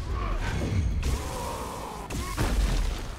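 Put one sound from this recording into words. Rubble crashes and scatters.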